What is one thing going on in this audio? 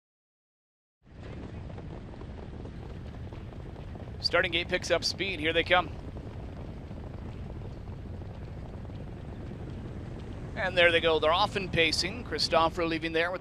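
Horses' hooves patter on a dirt track.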